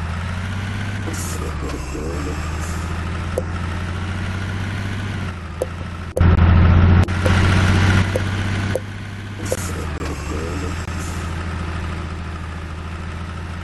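A truck's diesel engine hums steadily.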